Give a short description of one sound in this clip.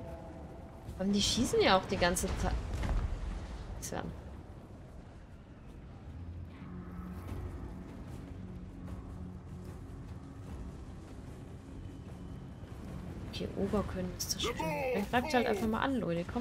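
A young woman talks with animation close to a microphone.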